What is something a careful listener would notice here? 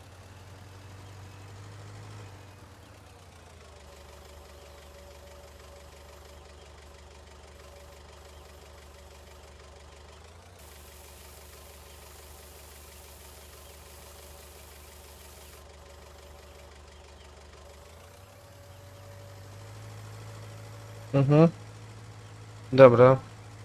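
A tractor engine drones steadily, rising and falling in pitch as it speeds up and slows down.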